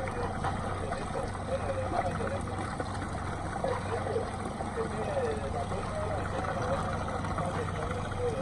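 Water rushes and splashes against a moving boat.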